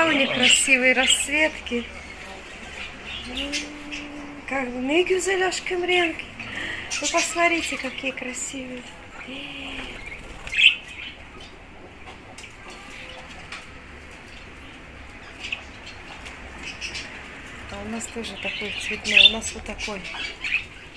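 Budgies chirp and twitter close by.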